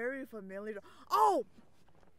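A young person lets out a loud, wailing cry close to a microphone.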